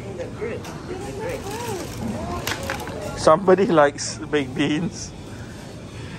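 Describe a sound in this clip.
Cans and a bottle rattle in a shopping cart.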